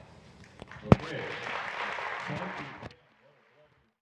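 A large audience applauds in a big echoing hall.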